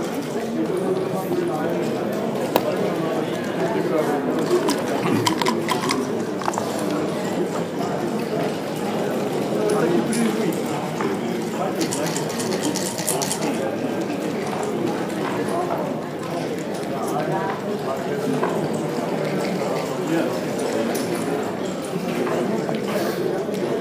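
Plastic game pieces click against a wooden board.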